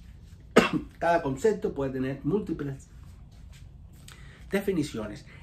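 A middle-aged man speaks calmly and close by.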